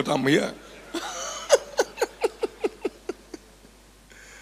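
A man laughs in short bursts into a microphone.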